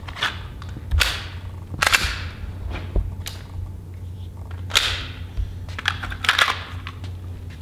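A pistol's metal parts click as it is handled.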